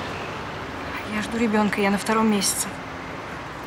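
A young woman speaks quietly at a distance.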